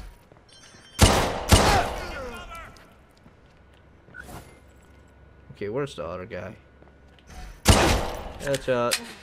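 Pistol shots ring out loudly and echo.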